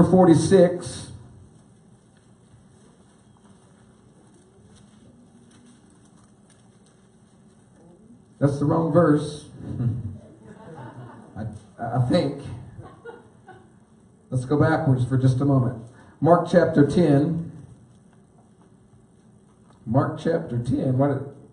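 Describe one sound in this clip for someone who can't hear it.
A man preaches with animation through a microphone, with pauses, in a large echoing room.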